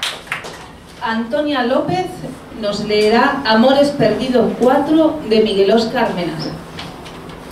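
A woman speaks into a microphone over a loudspeaker, in an echoing room.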